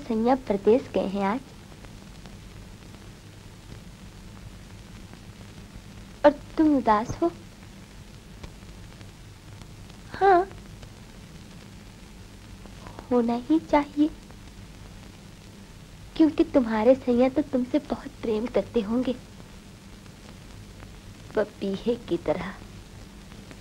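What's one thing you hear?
Another young woman answers softly.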